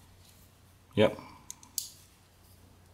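A folding knife blade snaps open and shut with sharp clicks.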